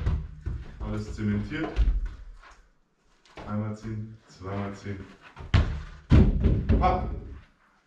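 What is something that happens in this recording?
A ball thumps as a man kicks it.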